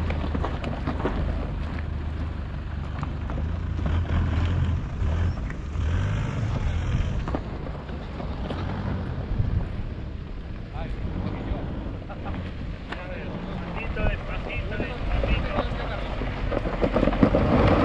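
An engine hums low as an off-road vehicle crawls over rough ground.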